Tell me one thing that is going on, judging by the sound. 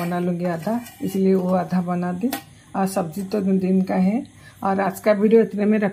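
A metal lid clinks onto a steel tin.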